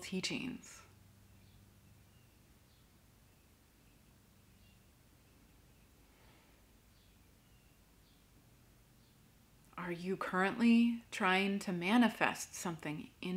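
A young woman speaks calmly and softly, close to a microphone.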